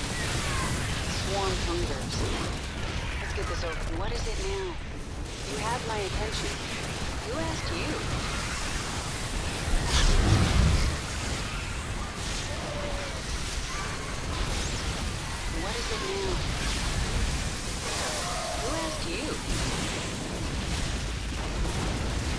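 Gunfire and blasts clatter steadily in a busy battle.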